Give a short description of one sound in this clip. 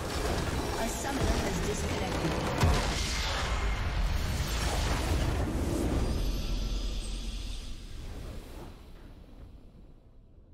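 A huge crystal structure bursts apart with a deep, booming rumble.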